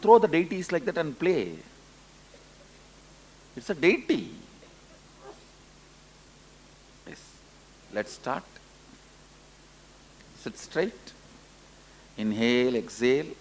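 A man speaks calmly into a microphone in short phrases with pauses.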